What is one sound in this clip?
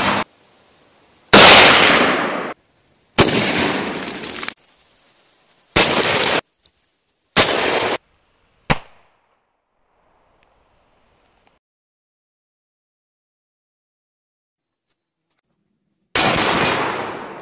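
Rifle shots crack outdoors and echo off into the distance.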